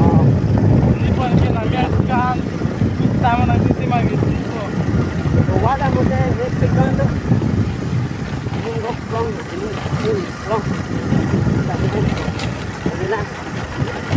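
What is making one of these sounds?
Wind rumbles loudly past the microphone outdoors.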